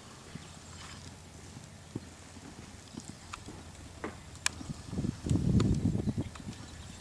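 A horse's hooves thud on soft sand as it canters.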